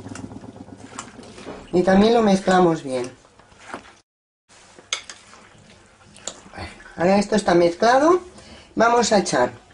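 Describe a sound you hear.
A spoon stirs food in a glass bowl.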